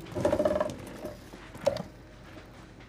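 Plastic bottles knock and rattle.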